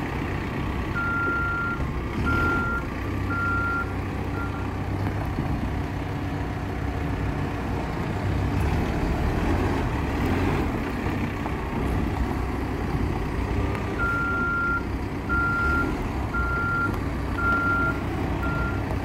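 A backhoe loader's reversing alarm beeps.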